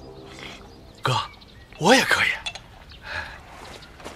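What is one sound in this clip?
Another young man calls out excitedly.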